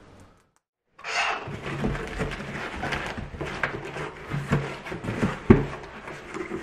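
Cardboard rustles and scrapes as a box is opened up close.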